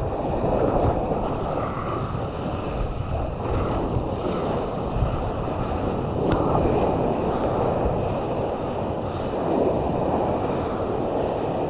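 A hand paddles through the water with splashing strokes.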